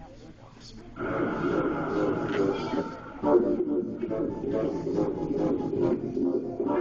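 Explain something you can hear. A crowd of spectators murmurs and chatters in an echoing hall.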